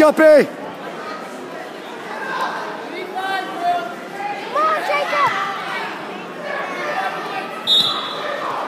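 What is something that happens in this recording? Shoes squeak on a wrestling mat.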